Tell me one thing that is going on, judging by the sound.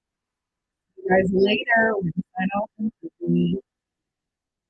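A young woman speaks with animation into a microphone, heard through an online call.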